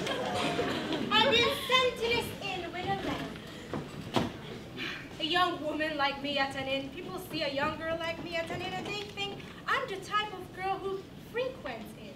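A young woman speaks theatrically, heard from a distance in a large echoing hall.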